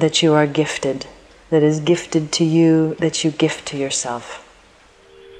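A middle-aged woman speaks calmly and closely into a microphone.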